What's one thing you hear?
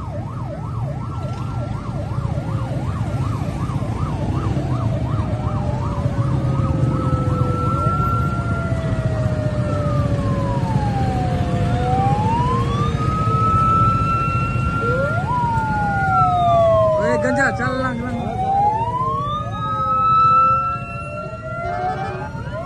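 Police sirens wail and warble loudly.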